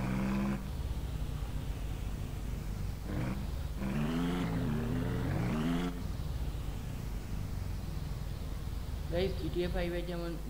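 A small vehicle's engine hums low and steadily as it drives.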